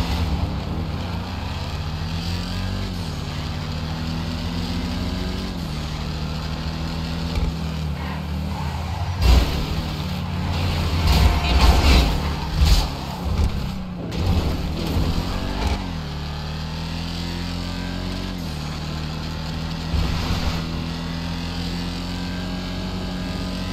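A sports car engine hums steadily and rises and falls as the car changes gear.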